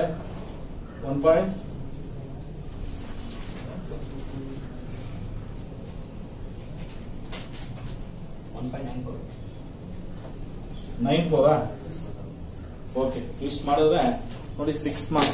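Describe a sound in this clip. A middle-aged man speaks calmly and explains, close by.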